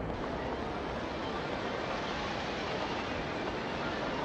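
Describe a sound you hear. Footsteps run on pavement.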